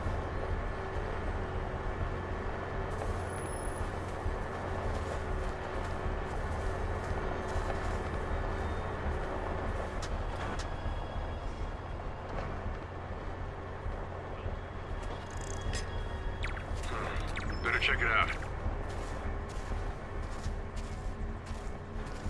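Footsteps pad softly over grass.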